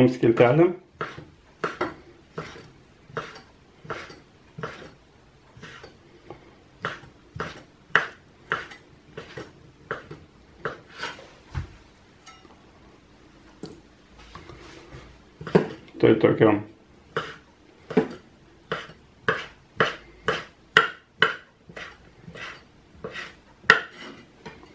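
A knife chops on a wooden cutting board with quick, steady taps.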